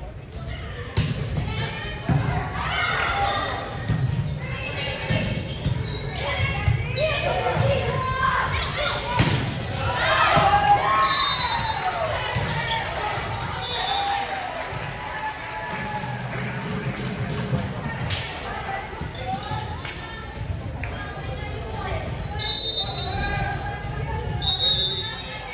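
A volleyball is struck with sharp thuds.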